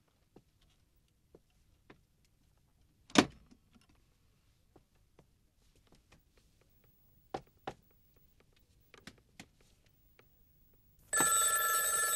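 Footsteps tread slowly across a floor.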